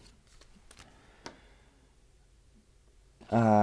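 Small items clatter and click as a man rummages in a drawer.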